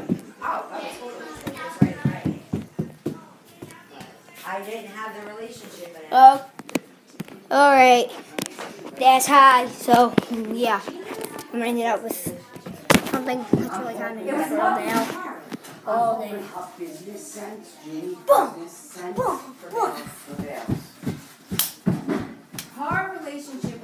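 A boy talks loudly and excitedly close to a phone microphone.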